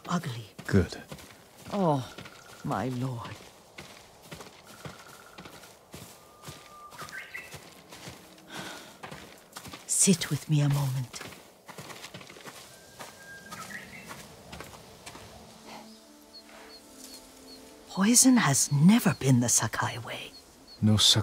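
An elderly woman speaks quietly and calmly.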